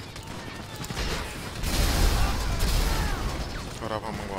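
A rocket launcher fires with a loud whoosh and boom.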